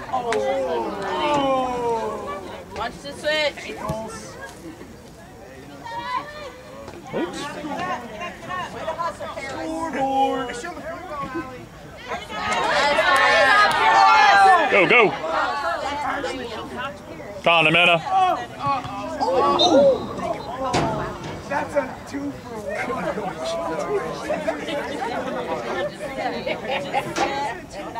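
Young women players call out to each other across an open field.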